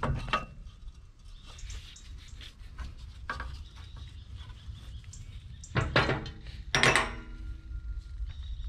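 Metal parts clink and scrape.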